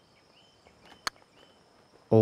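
A putter taps a golf ball once.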